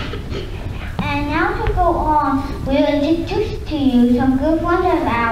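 A young girl sings through a microphone in a large hall.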